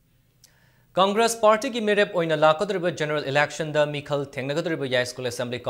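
A young man reads out the news clearly through a microphone.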